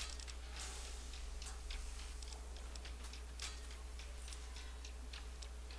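Short soft clicks tick again and again as a menu list scrolls.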